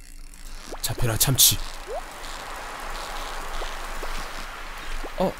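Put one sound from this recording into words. A fishing reel clicks and whirs steadily.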